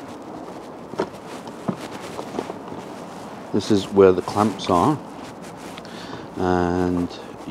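A plastic case clicks and knocks as it is handled.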